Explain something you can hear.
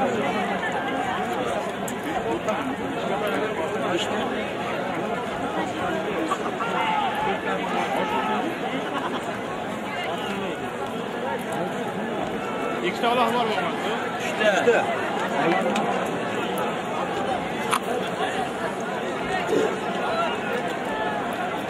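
Horses' hooves thud on soft ground as riders jostle in a scrum.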